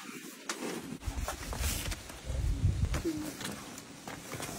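A large cardboard box scrapes and thumps as it is pushed.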